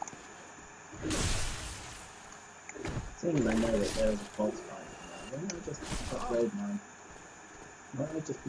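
A sword strikes armour with heavy, swooshing hits.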